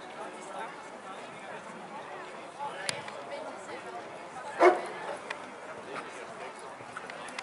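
Hooves thud on soft sand as a horse canters.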